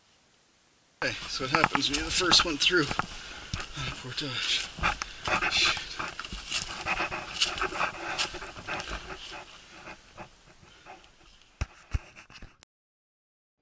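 Dry twigs and brush crackle and snap underfoot, close by.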